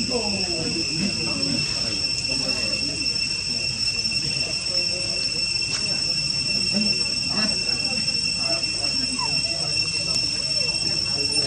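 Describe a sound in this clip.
A monkey chews and munches on food.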